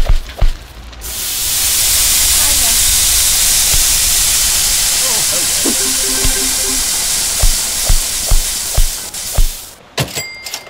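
Meat patties sizzle loudly on a hot grill.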